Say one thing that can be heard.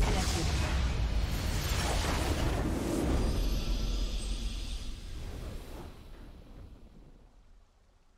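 A victory fanfare swells and fades out.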